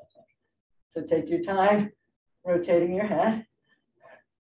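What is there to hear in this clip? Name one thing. An older woman speaks calmly into a microphone, as if on an online call.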